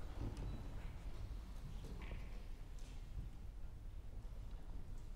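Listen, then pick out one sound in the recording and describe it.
An orchestra plays softly in a large hall.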